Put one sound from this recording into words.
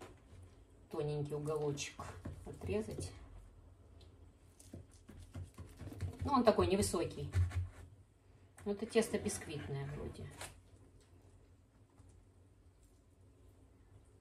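A knife cuts through a crisp pie crust.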